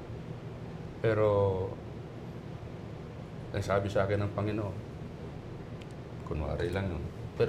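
A man speaks calmly and with pauses through a microphone.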